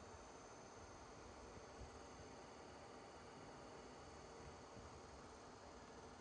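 A disc player's drive whirs softly as the disc spins.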